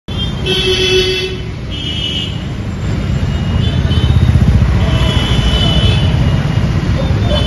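Traffic hums along a busy street outdoors.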